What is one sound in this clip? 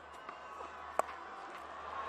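A bat cracks against a cricket ball.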